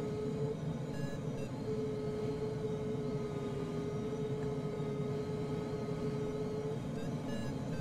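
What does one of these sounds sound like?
A glider's flight instrument hums a steady tone.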